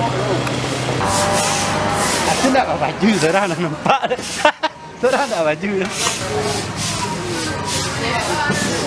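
A broom scrapes across a dusty ground in quick strokes.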